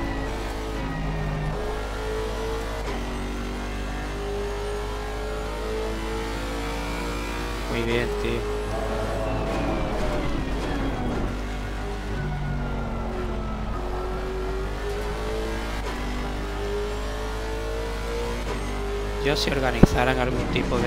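A racing car engine roars steadily, its pitch rising with each gear and dropping sharply at each shift.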